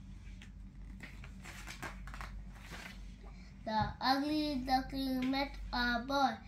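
A young boy reads aloud close by.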